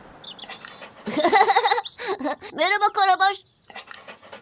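A young boy laughs happily.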